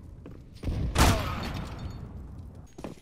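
A gunshot bangs sharply, echoing off walls.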